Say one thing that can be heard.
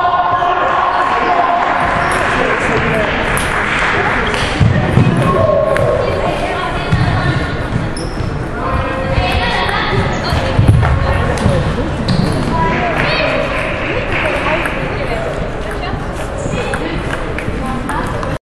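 A ping-pong ball clicks on the bats and table.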